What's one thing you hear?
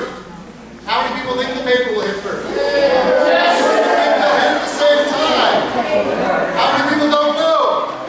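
Children call out excitedly.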